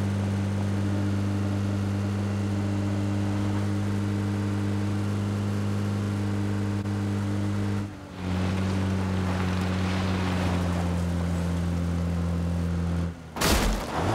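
An engine drones steadily as a jeep drives over rough ground.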